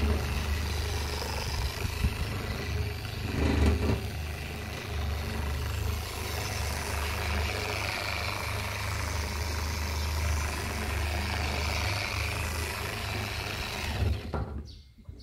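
An electric polisher whirs steadily against a panel.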